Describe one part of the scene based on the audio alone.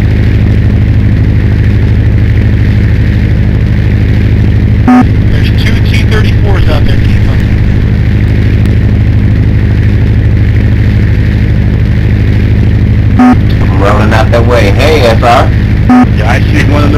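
A propeller engine drones steadily and loudly.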